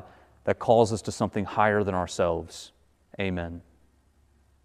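A man speaks calmly into a microphone in a reverberant room.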